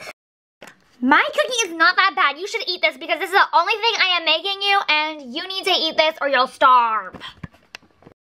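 A young girl talks close up in a high, animated, sing-song voice.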